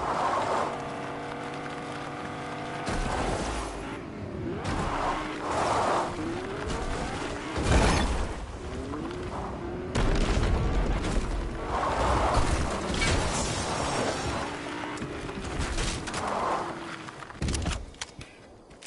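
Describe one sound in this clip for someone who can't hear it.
A car engine roars as the car drives.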